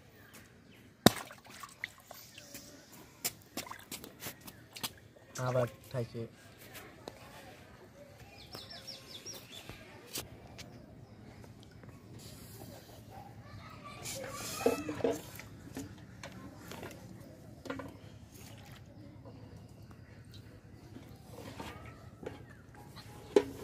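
Water splashes in a metal bowl.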